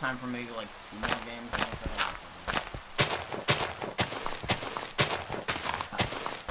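Digging crunches in quick, regular thuds as blocks of earth break.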